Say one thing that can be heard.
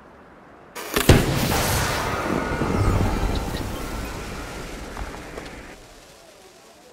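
A game gift box bursts open with a loud sparkling whoosh that slowly fades.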